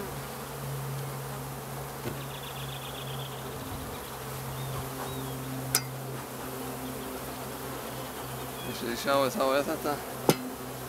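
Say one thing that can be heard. Bees buzz steadily all around.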